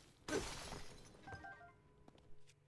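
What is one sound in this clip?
Rock shatters with a loud crunching burst.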